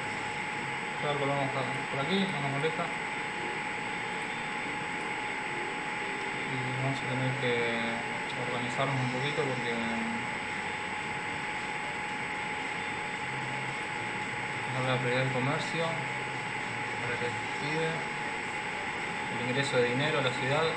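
A young man talks calmly into a close microphone, in short bursts.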